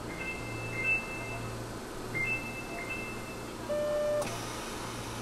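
A door chime beeps several times as train doors close.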